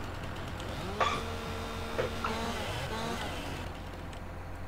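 A chainsaw revs and cuts through wood.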